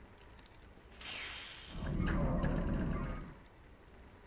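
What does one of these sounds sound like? A heavy metal lock turns and clanks open.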